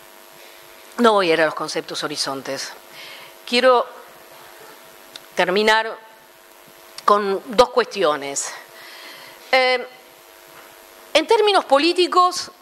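A woman speaks into a microphone with animation, in short bursts with pauses, heard through a loudspeaker.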